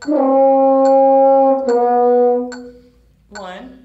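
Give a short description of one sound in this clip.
A French horn plays two long, steady notes close by.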